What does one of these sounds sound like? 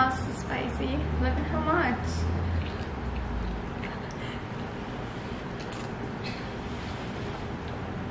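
A man slurps noodles noisily.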